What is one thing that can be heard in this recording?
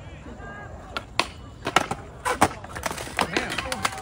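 A skateboard clatters onto concrete as a young man falls.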